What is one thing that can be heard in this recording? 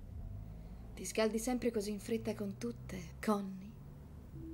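A second woman speaks coolly, close by.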